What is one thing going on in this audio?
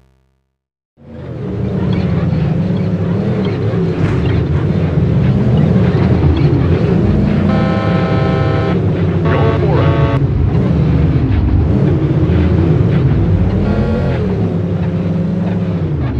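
A truck engine roars loudly and gruffly, rising and falling in pitch.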